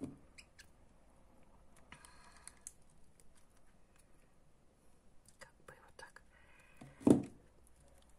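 Small metal pliers snip and click.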